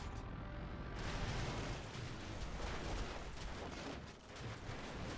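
Metal debris crashes and scrapes as a vehicle pushes through a structure.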